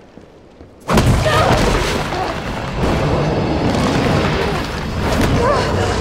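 A monster roars loudly and growls.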